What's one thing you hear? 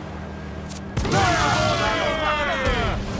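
An enemy warship explodes.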